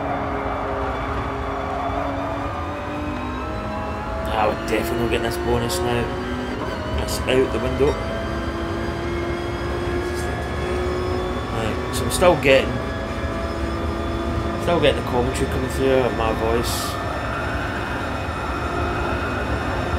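A racing car engine roars steadily at high speed.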